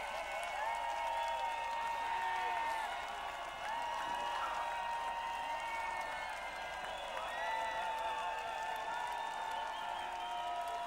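A large crowd sings and cheers along.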